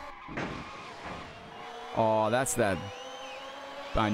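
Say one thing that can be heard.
A racing car engine roars at speed.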